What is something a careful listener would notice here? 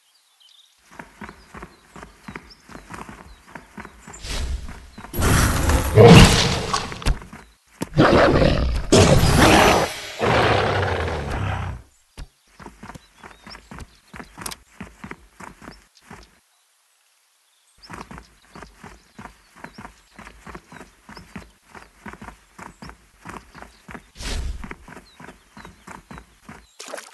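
Quick footsteps patter steadily on the ground.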